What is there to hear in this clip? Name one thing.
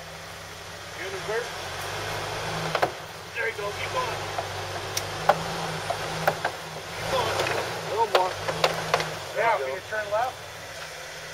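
A man calls out directions nearby.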